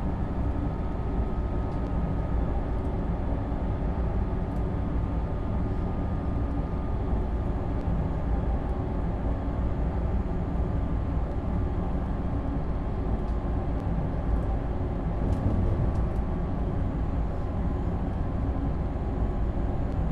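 An electric train's motor hums steadily.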